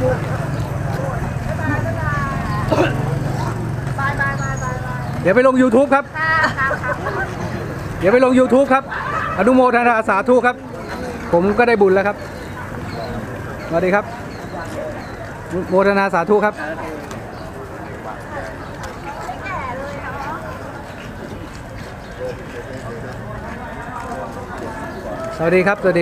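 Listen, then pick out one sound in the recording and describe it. Footsteps shuffle on pavement as a crowd walks past.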